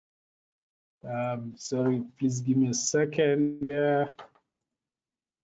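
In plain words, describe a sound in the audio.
A man speaks calmly through a headset microphone on an online call.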